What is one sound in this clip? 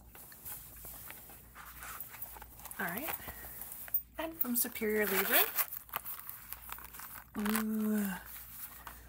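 Hands rustle and rub against a soft zippered case.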